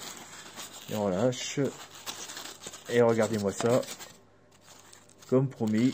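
Foam pieces squeak and creak as they are pressed and pulled apart by hand.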